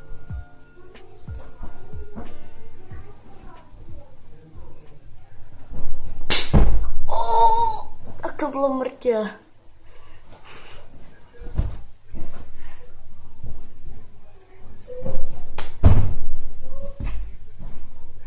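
Feet thump heavily on a floor close by.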